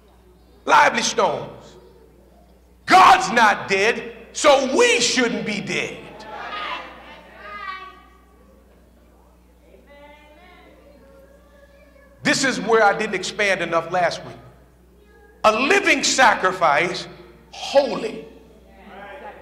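A man preaches loudly and with passion into a microphone, his voice echoing in a large hall.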